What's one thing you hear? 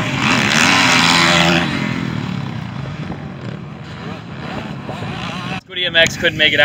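A dirt bike engine revs loudly and drones off into the distance.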